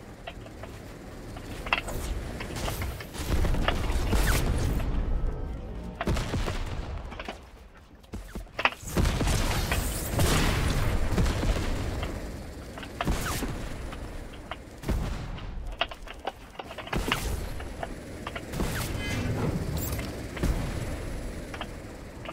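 Wooden walls and ramps are built with quick thuds and clacks.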